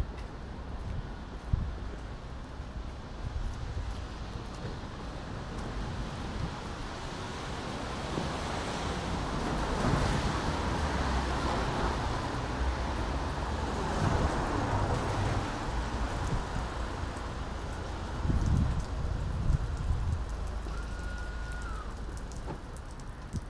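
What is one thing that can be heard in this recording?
Traffic swishes by on a wet road.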